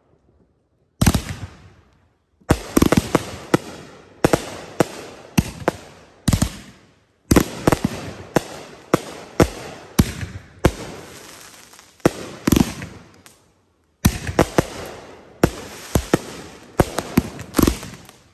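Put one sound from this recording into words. Fireworks bang and crackle loudly outdoors, echoing around.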